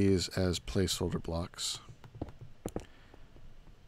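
Heavy blocks thud softly as they are set down.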